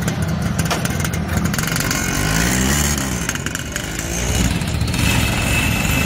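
A motor scooter revs and pulls away.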